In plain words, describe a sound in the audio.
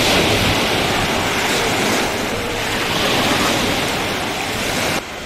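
Many people splash and play in the water outdoors.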